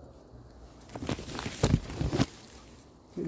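Leaves rustle and brush close by.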